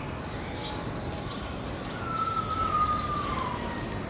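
A bicycle rolls quietly along a paved path.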